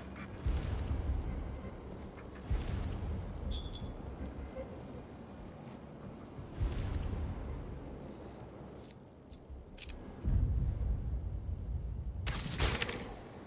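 Whooshing game sounds rush by in short bursts.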